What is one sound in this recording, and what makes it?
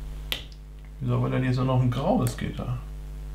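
Small plastic pieces click sharply.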